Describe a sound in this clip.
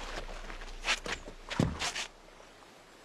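A cloth bag thuds onto stone.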